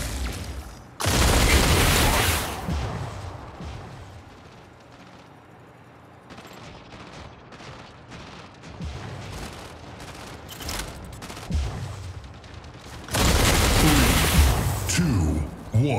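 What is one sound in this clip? Weapons fire in loud, rapid bursts.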